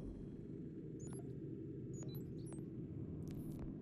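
Soft electronic menu ticks sound now and then.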